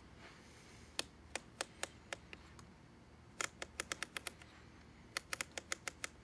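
Plastic parts of a toy catapult click rapidly as it is wound.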